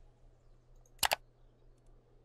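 A sharp double click sounds.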